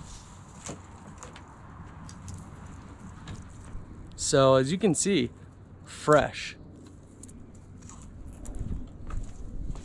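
Leafy branches rustle as a man drags them.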